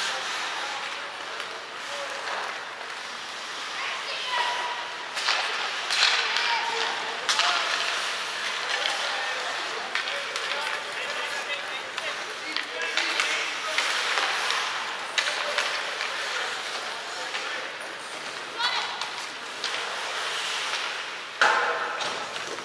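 Skates scrape and hiss across the ice in an echoing arena.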